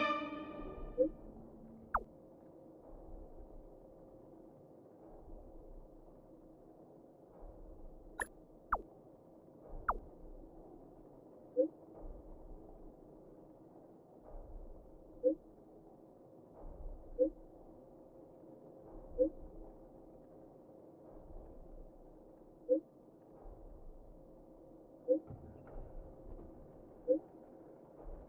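A soft two-note chime sounds each time a chat message arrives.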